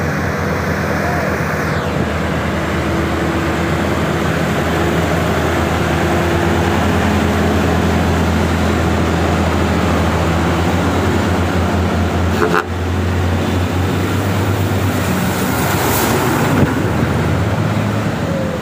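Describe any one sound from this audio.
A heavy truck engine rumbles and idles close by.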